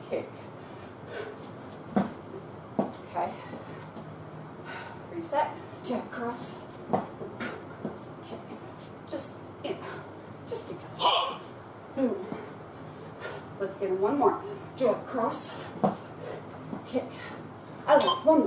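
Sneakers thud and scuff on the floor.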